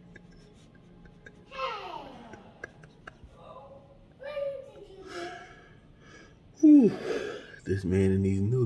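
A young man laughs close by.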